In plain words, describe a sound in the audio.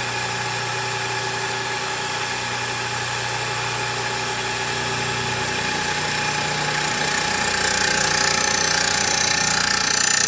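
A milling machine whirs steadily as its cutter grinds into metal, growing louder and harsher toward the end.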